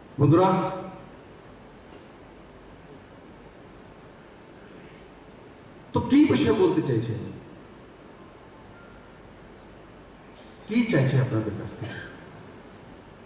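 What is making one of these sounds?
A man speaks loudly and forcefully into a microphone, in short bursts with pauses.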